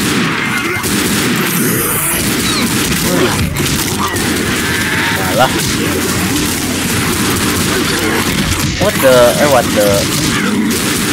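Zombies growl and snarl close by.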